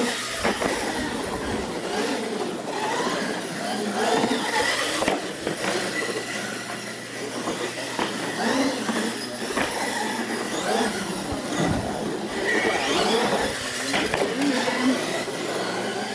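Small electric motors whine as toy cars race around.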